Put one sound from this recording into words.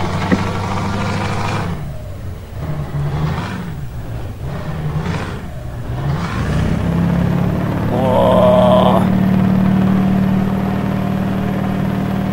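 Tyres hiss on a wet road.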